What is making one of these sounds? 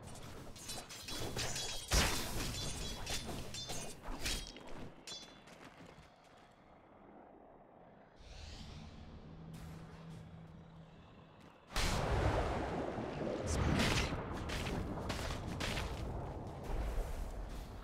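Magic spells crackle and blows land in a fast fight.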